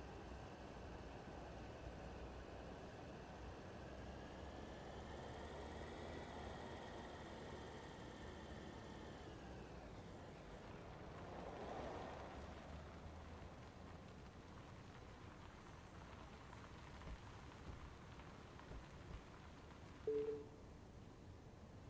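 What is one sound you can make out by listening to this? A car engine hums steadily while driving, then quiets as the car slows.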